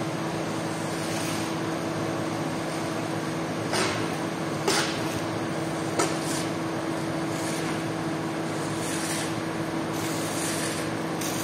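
A squeegee scrapes and swishes wet suds across a soaked rug.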